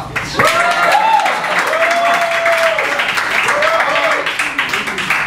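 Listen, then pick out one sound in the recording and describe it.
An audience laughs and cheers.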